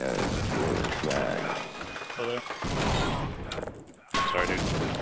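Gunshots crack in rapid bursts.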